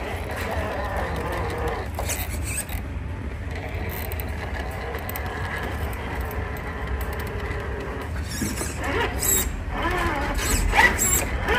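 Rubber tyres scrape and crunch over rock.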